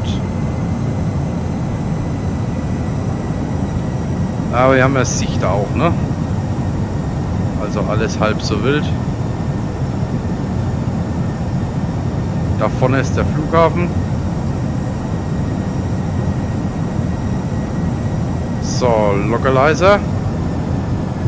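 Jet engines drone steadily with a low rumble.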